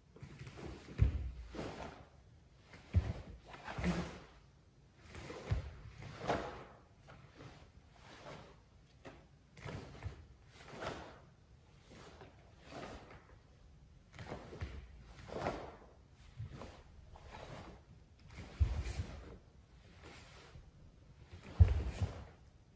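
Bare feet stamp on a wooden sports floor in an echoing hall.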